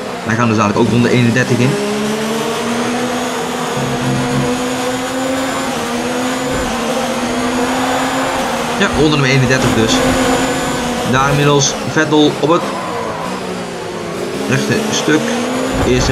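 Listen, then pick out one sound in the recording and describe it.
A racing car engine screams at high revs, rising and falling as it shifts gears.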